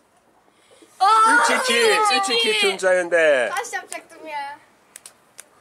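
A young boy laughs loudly.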